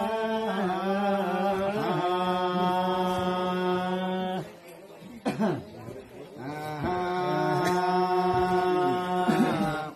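An elderly man chants in long, steady held notes close by.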